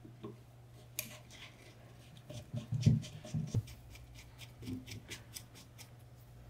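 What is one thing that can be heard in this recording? A screwdriver clicks and scrapes against metal.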